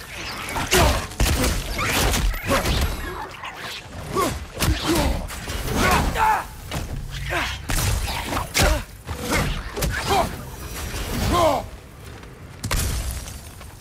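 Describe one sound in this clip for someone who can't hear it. Heavy blows thud and clang in a close fight.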